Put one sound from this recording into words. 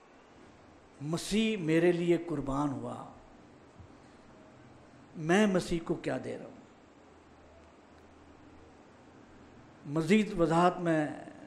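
An older man speaks calmly into a microphone in short phrases with pauses.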